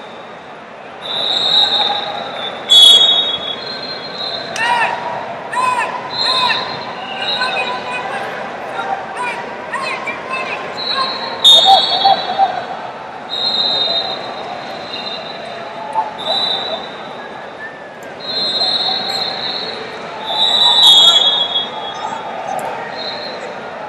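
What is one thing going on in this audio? Shoes squeak sharply on a gym floor.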